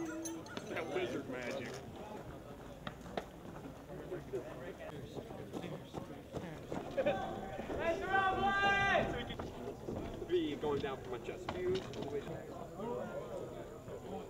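Young men talk and call out nearby outdoors.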